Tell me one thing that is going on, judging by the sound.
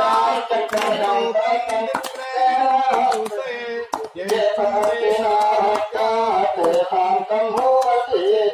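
A group of men chant together in unison outdoors.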